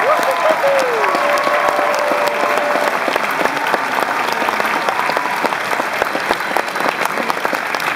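A large crowd cheers and claps loudly in a big echoing hall.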